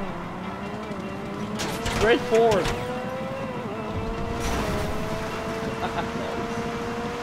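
A sports car engine hums steadily and revs up and down.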